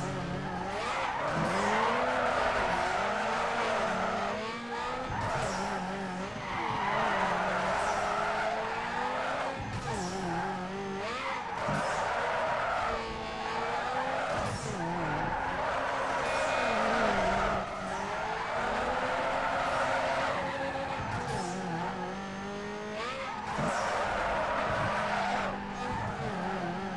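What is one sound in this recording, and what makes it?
Tyres screech loudly as a car drifts, again and again.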